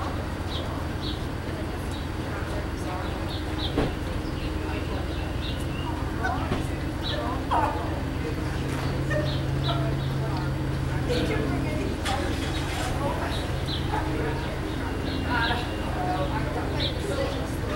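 A train idles nearby with a steady low rumble.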